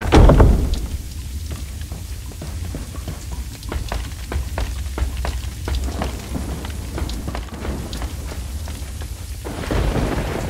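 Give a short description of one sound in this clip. Footsteps knock on a wooden floor at a steady walking pace.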